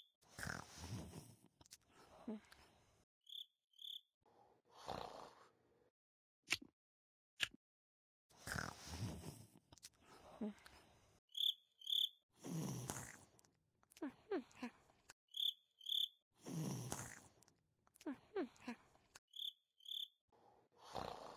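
A cartoon cat snores loudly and rhythmically.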